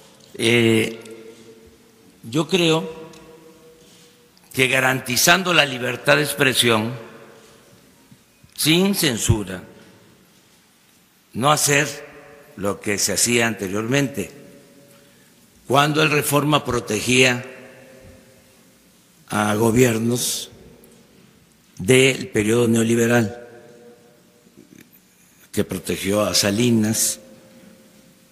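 An older man speaks firmly into a microphone, pausing between phrases.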